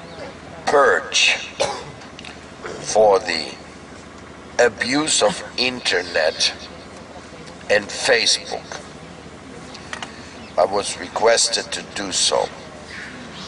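A middle-aged man speaks calmly and slowly into a close headset microphone.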